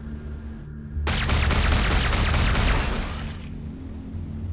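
A laser beam fires with a loud crackling roar.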